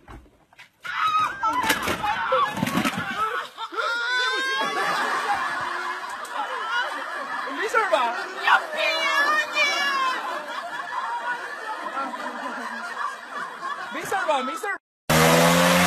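Women scream and shout in panic nearby.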